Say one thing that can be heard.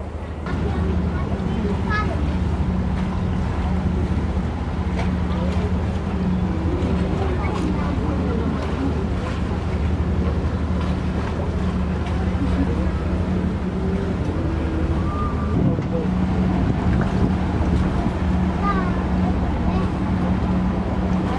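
A boat engine hums steadily and low.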